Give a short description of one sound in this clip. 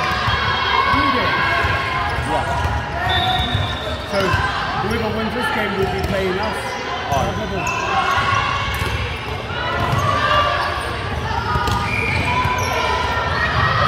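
Many young women's voices chatter and call out around a large echoing hall.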